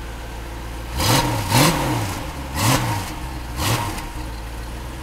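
A sports car engine revs sharply several times.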